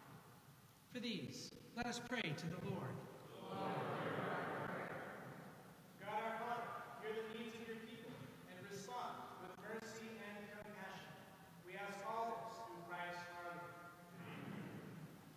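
Two men chant together, echoing in a large hall.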